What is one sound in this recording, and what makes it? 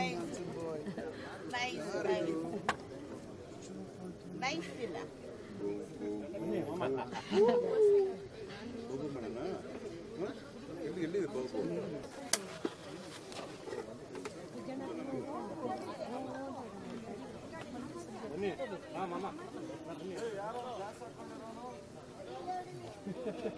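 A crowd of men chatters nearby outdoors.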